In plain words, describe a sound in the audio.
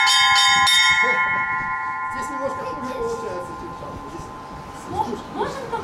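Bells ring on and slowly fade away.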